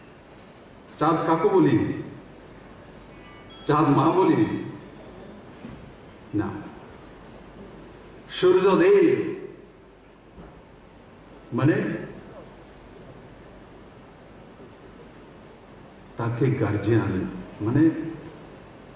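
A man speaks emphatically into a microphone in short bursts, heard through loudspeakers in a hall.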